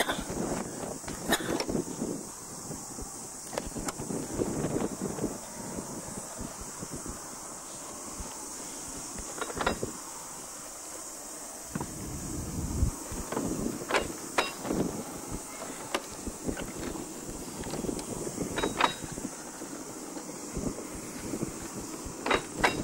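A small rail trolley rolls along the track with a low rumble.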